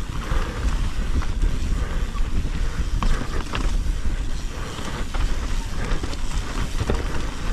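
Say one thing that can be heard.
Bike tyres rumble and crunch over rocky dirt.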